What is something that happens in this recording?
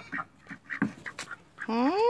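A duck flaps its wings.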